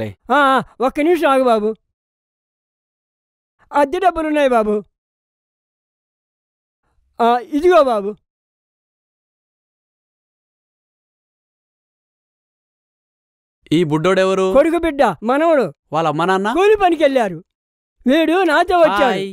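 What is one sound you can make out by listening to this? An elderly man talks with animation, close by.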